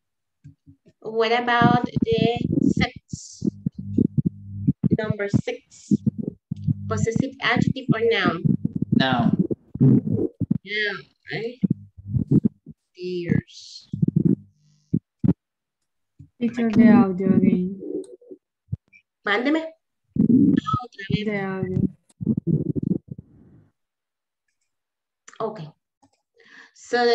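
A young woman speaks calmly over an online call, as if teaching.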